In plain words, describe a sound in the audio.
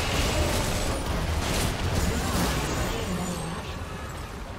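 Magic blasts and impacts crackle in a fight.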